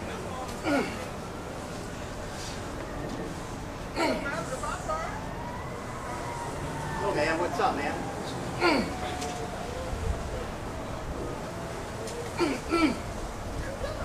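Young men shout and yell outdoors during a play fight.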